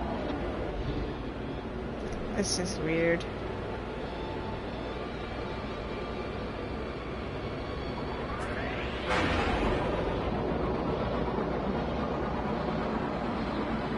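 A spaceship engine rumbles steadily in flight.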